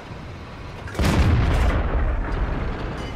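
A tank cannon fires with a loud, booming blast that echoes away.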